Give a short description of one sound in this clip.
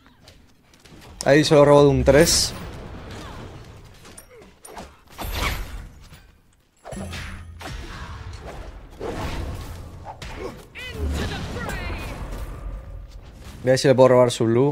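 Game combat effects clash and whoosh.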